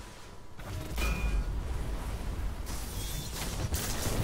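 An energy blast crackles and booms.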